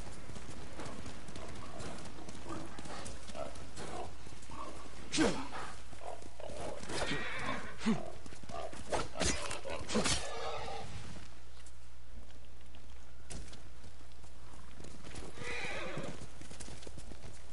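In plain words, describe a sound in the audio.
A horse's hooves thud and rustle through dry fallen leaves.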